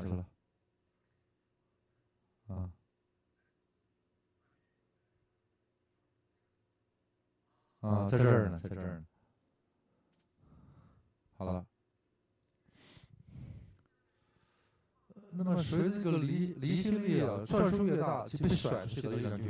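An elderly man speaks with animation, heard through a microphone, in bursts with pauses.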